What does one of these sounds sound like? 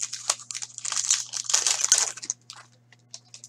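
Plastic card wrapping crinkles and rustles as hands handle it.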